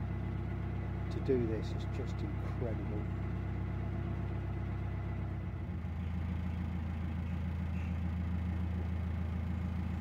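A boat engine chugs steadily at low pitch.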